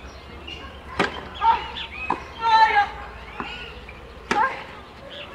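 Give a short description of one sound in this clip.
A tennis racket strikes a ball outdoors.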